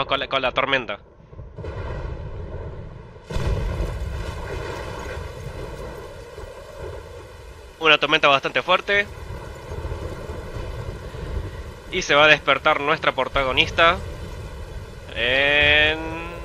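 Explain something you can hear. A young man speaks with animation through a headset microphone.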